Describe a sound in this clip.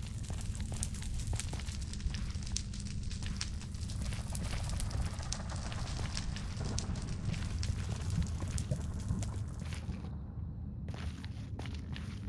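Fire crackles and pops nearby.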